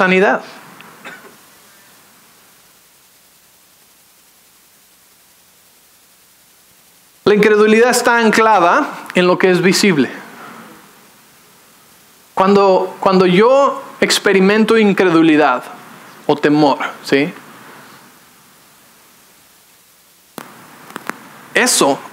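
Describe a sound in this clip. A man speaks calmly into a microphone, pausing between phrases.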